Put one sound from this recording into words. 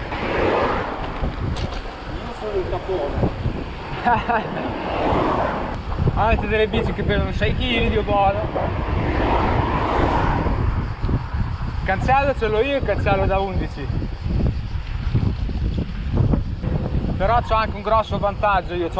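Wind rumbles loudly over a microphone.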